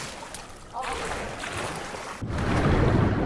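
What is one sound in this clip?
Water splashes as a swimmer strokes.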